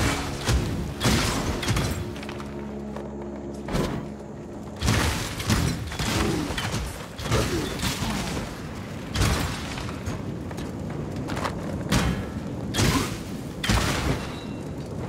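Magic spells burst and zap in sharp, repeated blasts.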